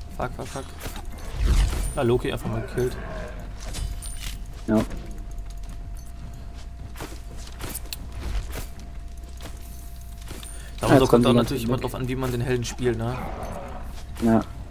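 Blows and weapons thud and clash in a fight.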